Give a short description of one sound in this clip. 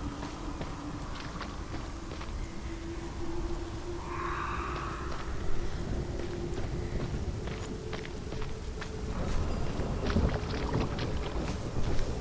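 Footsteps tread slowly over a hard floor.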